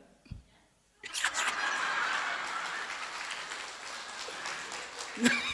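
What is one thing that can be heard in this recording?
A crowd laughs loudly and claps.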